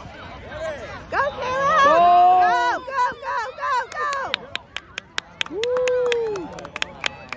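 Children shout and cheer loudly nearby.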